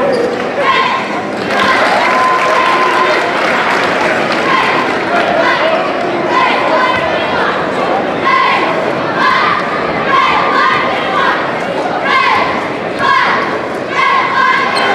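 A crowd shouts and cheers in a large, echoing hall.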